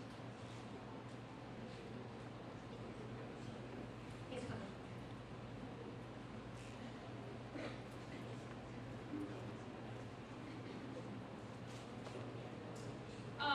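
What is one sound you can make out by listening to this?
A crowd murmurs and talks quietly in the background.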